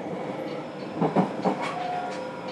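Train wheels clunk over rail joints.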